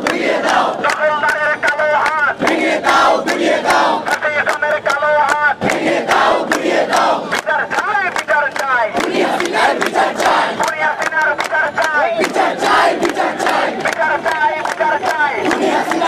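A crowd claps hands in a steady rhythm.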